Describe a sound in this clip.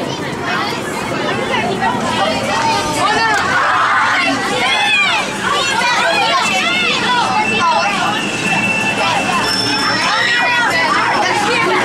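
Video game sound effects and music play loudly through loudspeakers.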